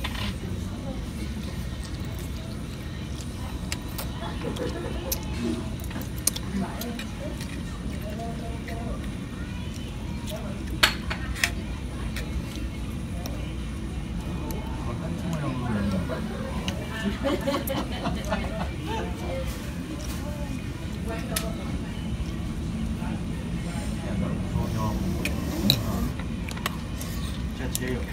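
Forks and spoons clink against bowls.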